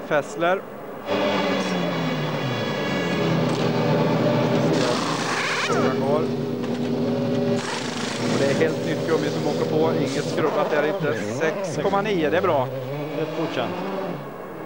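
A race car engine revs loudly nearby.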